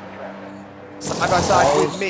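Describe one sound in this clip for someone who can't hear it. Pneumatic wheel guns whir and rattle in quick bursts.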